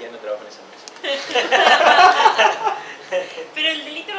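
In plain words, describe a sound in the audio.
A group of men laugh together.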